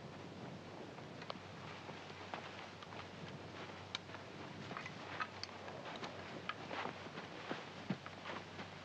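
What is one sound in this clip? Footsteps crunch softly in sand.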